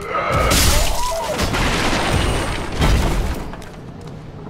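A sword slashes and strikes flesh with heavy thuds.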